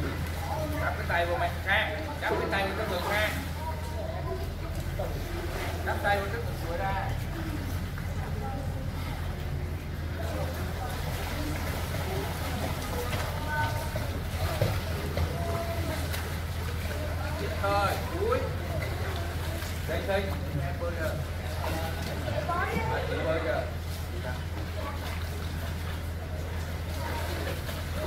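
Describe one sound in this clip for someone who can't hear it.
Children call out and chatter in an echoing pool area.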